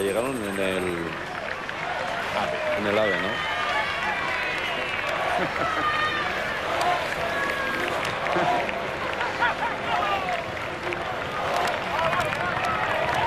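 A crowd cheers along the roadside.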